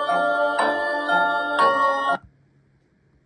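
Eerie music plays from a tablet speaker, then cuts off.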